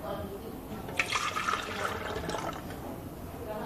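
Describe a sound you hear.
Liquid pours and splashes into a blender jug.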